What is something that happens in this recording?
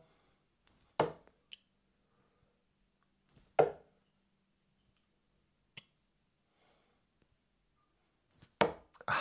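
Darts thud into a dartboard.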